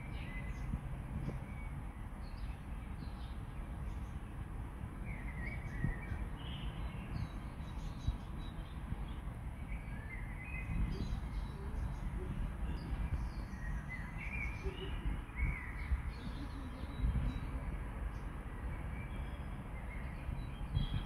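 Wind blows and buffets outdoors in gusts.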